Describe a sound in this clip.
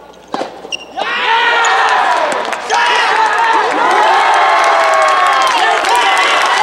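A crowd of young spectators cheers and shouts loudly in an echoing hall.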